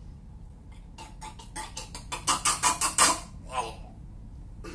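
A young man laughs loudly in bursts close by.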